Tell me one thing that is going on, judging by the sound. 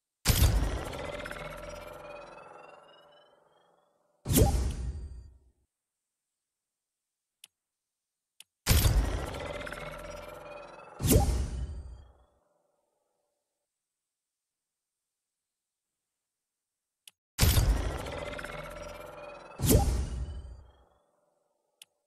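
A game menu plays loud ringing chimes for an error alert.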